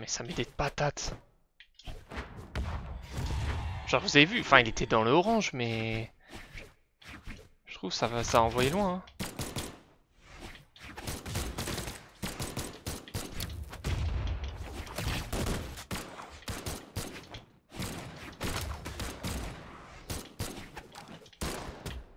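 Weapons clash and blows land in quick succession.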